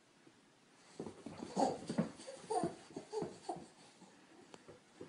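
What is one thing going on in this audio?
A baby coos and squeals close by.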